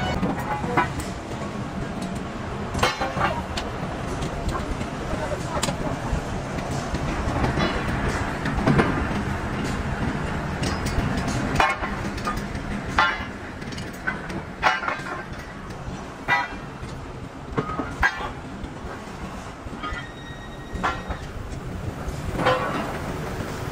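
A low industrial rumble fills a large open shed.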